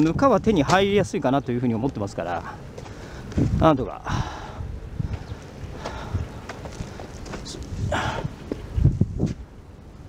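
Footsteps crunch on dry, loose soil.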